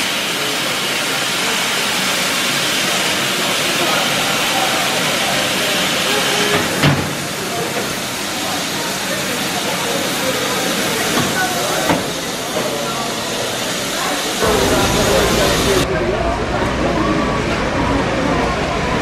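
Men, women and children chatter nearby in a crowd.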